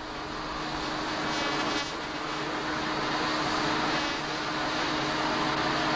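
Jet engines roar steadily nearby.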